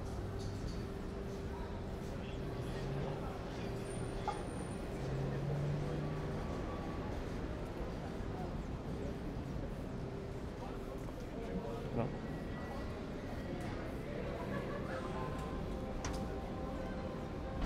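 Street traffic hums in the distance outdoors.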